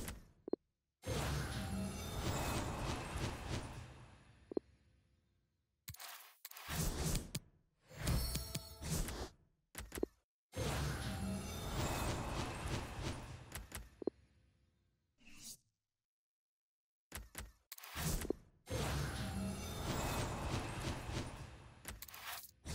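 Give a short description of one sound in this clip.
Game menu sounds whoosh and chime as card packs open.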